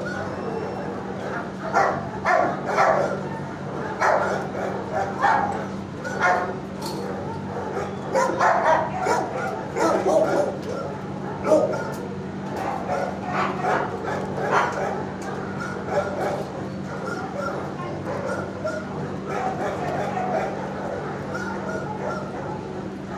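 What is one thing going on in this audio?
A dog sniffs close by.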